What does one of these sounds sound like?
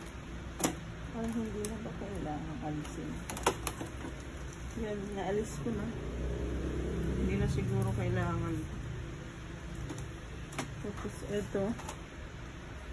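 A young girl talks quietly close by.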